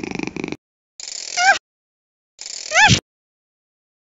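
A cartoon cat squeaks with rising yelps.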